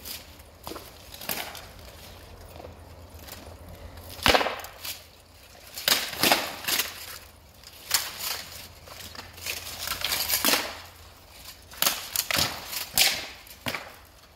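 Swords clash and clang against each other in a large echoing hall.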